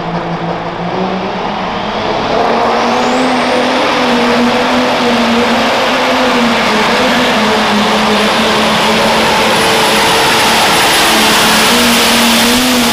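A turbocharger whistles, rising sharply in pitch.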